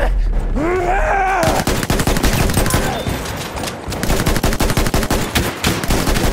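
A rifle fires repeated sharp shots close by.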